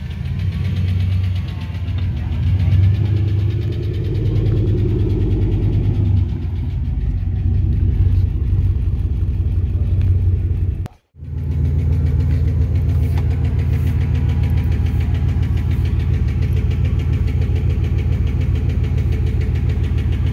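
A car engine idles close by with a deep, throbbing rumble.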